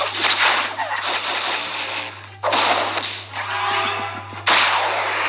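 Cartoon battle sound effects crash and whoosh loudly.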